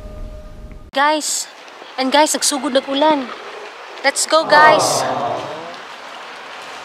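A young woman speaks close up with animation.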